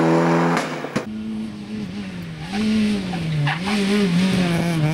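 A small rally car engine revs up and down as it drives past.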